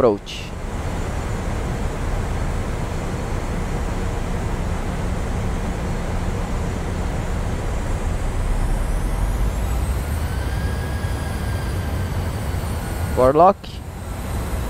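Jet engines hum with a steady low roar.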